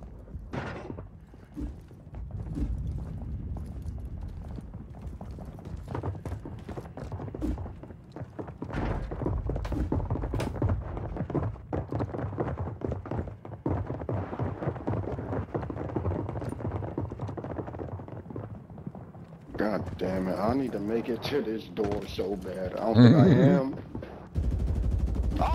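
Footsteps thud on stone stairs.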